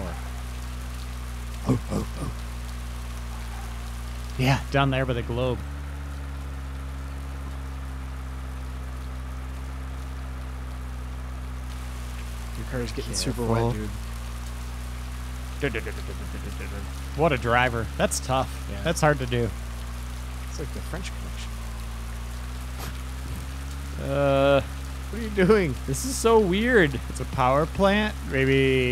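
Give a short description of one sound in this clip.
Rain patters down steadily.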